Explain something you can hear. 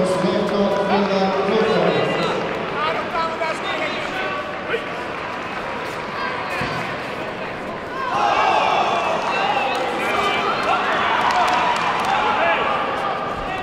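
Kicks and punches thud against padding.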